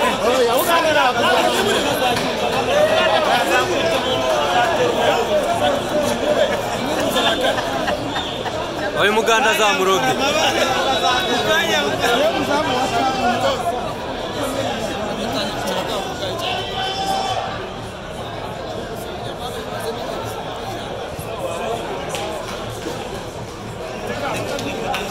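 A crowd in a stadium cheers and chants loudly.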